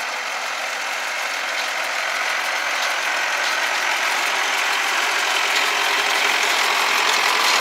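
A hay baler clatters and whirs as it gathers hay.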